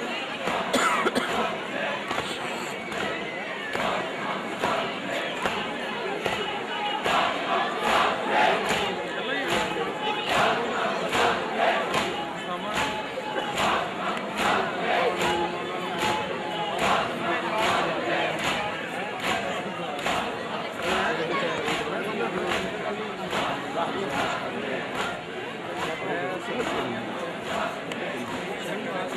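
A crowd of men beats their chests in a steady rhythm.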